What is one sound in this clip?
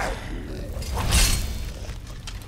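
A sword strikes metal armour with a sharp clang.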